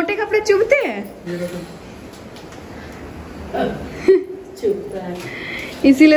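A woman laughs nearby.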